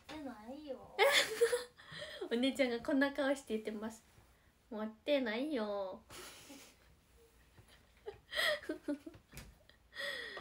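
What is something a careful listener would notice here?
A young woman laughs brightly close to a microphone.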